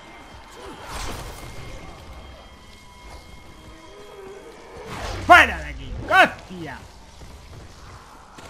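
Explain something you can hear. A fire bursts into flame with a whoosh.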